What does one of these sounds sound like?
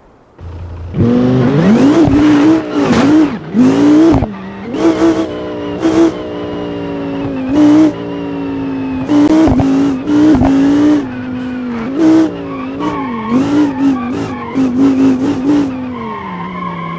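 A car engine revs hard, its pitch rising and falling again and again.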